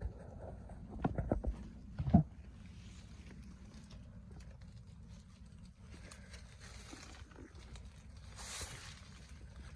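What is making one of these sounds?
Leaves rustle and brush close by.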